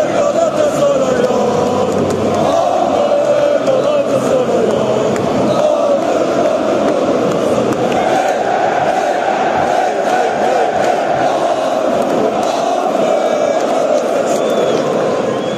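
Nearby male fans sing and shout close by.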